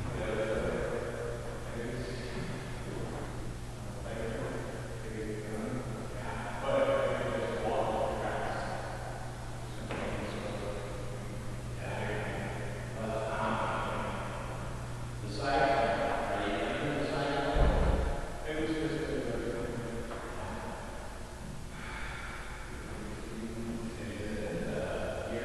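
A man talks calmly in a large echoing room.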